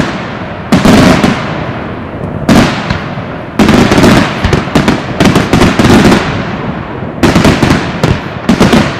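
Volcanic explosions boom and roar in repeated bursts.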